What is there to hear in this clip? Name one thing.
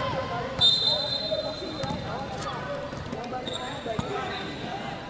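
A referee's whistle blows sharply in a large echoing hall.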